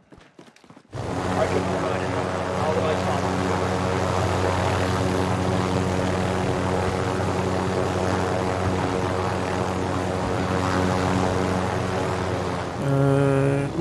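A helicopter engine hums steadily close by.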